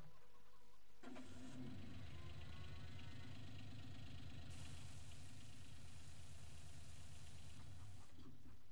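A small utility vehicle's engine idles with a steady hum.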